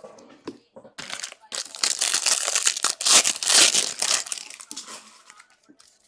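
A foil pack crinkles and tears open.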